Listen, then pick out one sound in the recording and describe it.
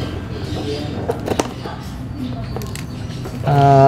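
Scissors snip through cardboard.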